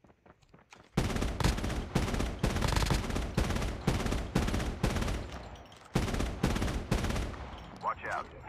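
A rifle fires rapid shots in quick bursts.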